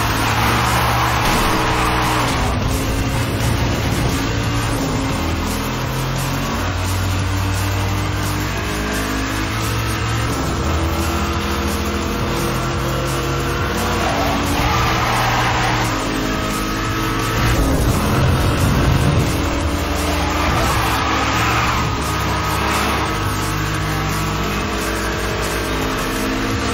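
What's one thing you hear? A car engine roars at high speed.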